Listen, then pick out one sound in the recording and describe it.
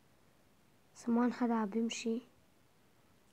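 A boy speaks briefly into a nearby microphone.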